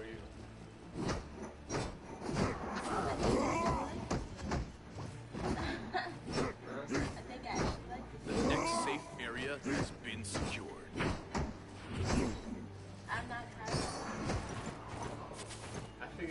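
Sword blows strike with sharp impacts.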